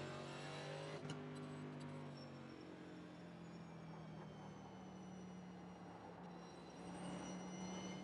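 A race car engine drones steadily, its pitch dropping and then rising again.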